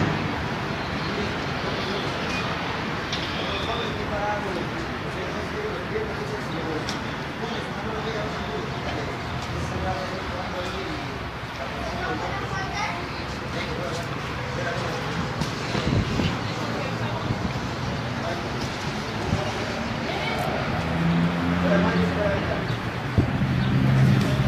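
Men talk in the background outdoors.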